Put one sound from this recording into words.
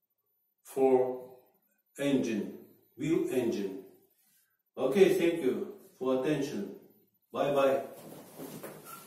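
A middle-aged man speaks calmly close by, in short phrases.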